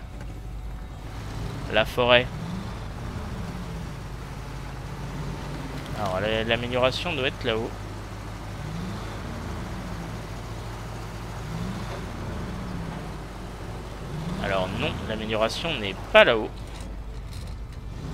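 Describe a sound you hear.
A vehicle engine hums low and steady as it climbs over rough ground.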